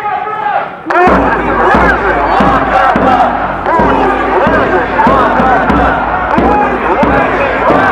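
A large crowd shouts a rhythmic chant outdoors.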